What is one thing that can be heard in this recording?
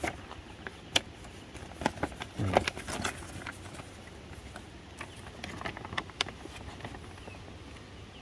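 Paper crinkles and rustles as a map is unfolded and handled.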